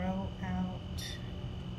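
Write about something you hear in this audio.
A woman makes two short humming sounds close by.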